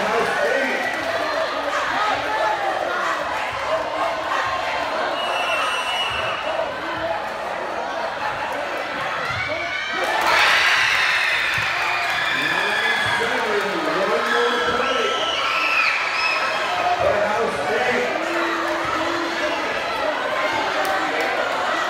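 A crowd of young people chatters and cheers in a large echoing gym.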